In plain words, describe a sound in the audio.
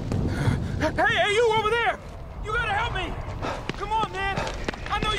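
A young man shouts for help with urgency.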